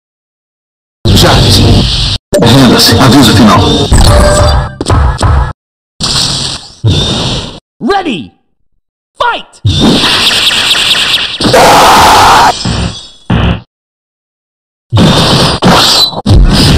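Game fighters punch and kick with loud hits and blasts.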